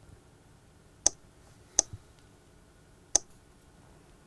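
Short electronic beeps sound as keys are tapped on a tablet.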